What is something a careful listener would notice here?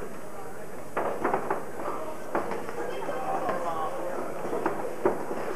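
Boxing gloves thud against a body in quick punches.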